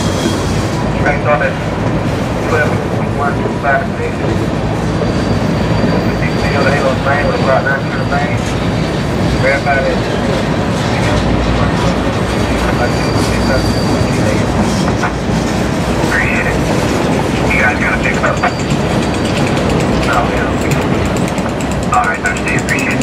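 Train wheels squeal sharply now and then.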